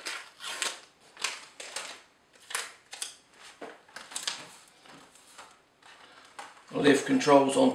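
A stiff plastic sheet rustles and crinkles as hands handle it.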